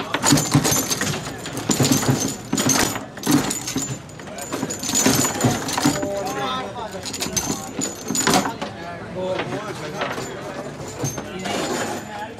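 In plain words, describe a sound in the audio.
Foosball rods clatter and plastic players knock against a ball.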